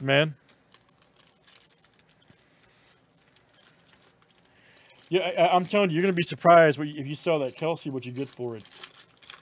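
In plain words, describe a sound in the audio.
A foil wrapper crinkles and rustles in someone's hands.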